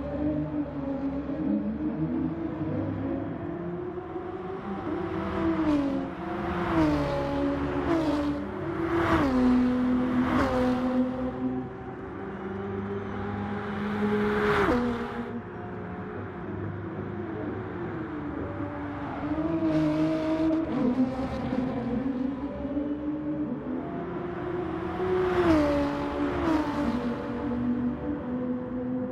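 A racing car engine roars at high revs, with the pitch dropping as it shifts gears.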